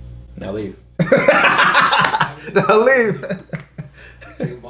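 A young man laughs loudly and heartily.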